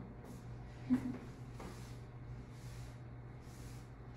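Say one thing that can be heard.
A board eraser wipes across a board.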